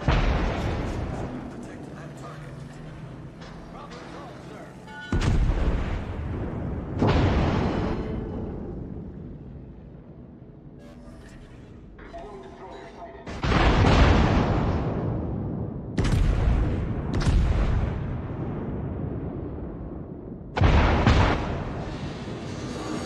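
Heavy naval guns fire in loud booming salvos.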